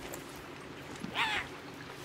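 A large cat growls briefly up close.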